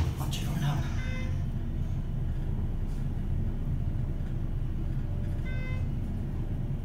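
An elevator chime dings as a floor is passed.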